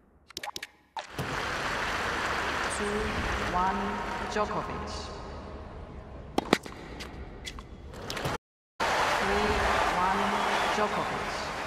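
A crowd cheers and applauds in a large arena.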